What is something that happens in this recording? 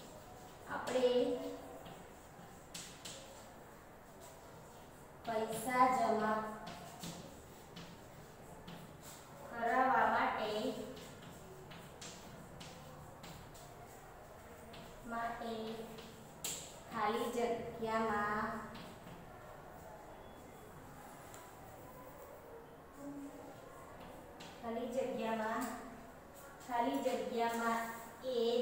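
A young woman speaks calmly in short phrases, close by.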